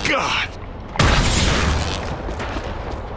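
A burst erupts with a loud whoosh and fades.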